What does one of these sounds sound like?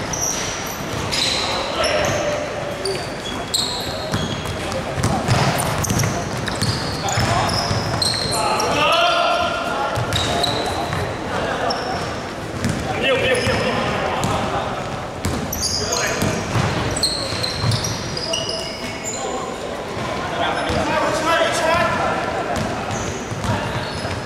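A basketball bounces on the floor.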